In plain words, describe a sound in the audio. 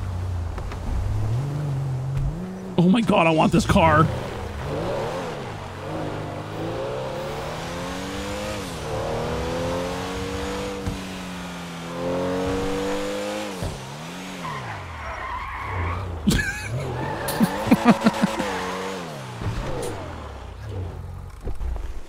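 A sports car engine starts and roars, revving up and down through the gears.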